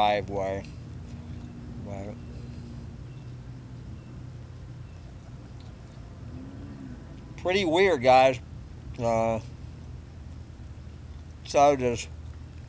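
An elderly man speaks casually in short bursts, close by.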